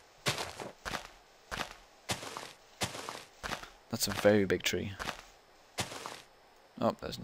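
Short crunching thuds sound as blocks are broken.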